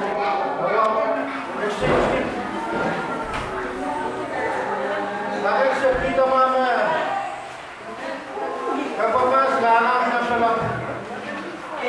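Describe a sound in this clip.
A man speaks with animation through a microphone and loudspeakers in an echoing room.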